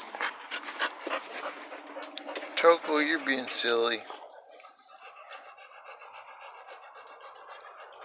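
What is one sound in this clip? A hand pats and strokes a dog's fur.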